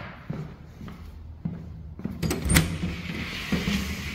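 A door latch clicks and a wooden door swings open.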